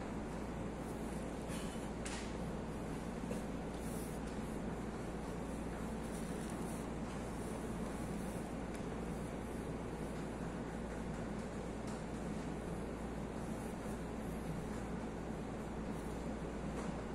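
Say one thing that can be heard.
A ceiling fan whirs steadily.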